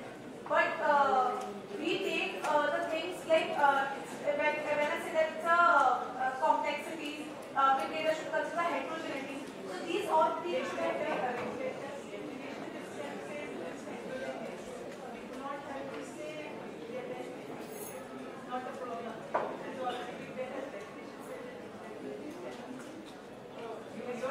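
A young woman speaks with animation through a microphone and loudspeakers in an echoing hall.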